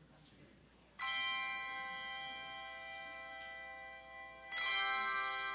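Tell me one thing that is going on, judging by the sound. Handchimes ring out together in a bright chord that rings on and slowly fades.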